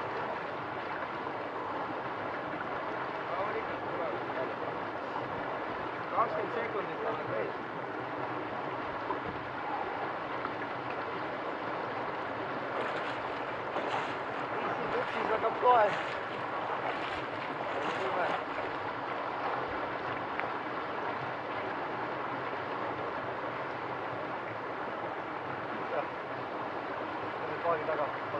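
A swimmer splashes through cold water.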